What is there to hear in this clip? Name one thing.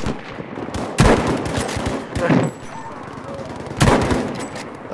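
A rifle fires with a loud, echoing crack.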